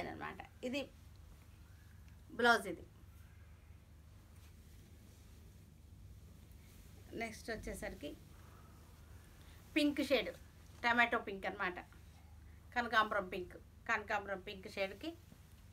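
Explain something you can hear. Silk fabric rustles as a woman unfolds it.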